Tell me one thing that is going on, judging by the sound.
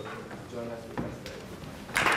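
A woman speaks briefly into a microphone in a large hall.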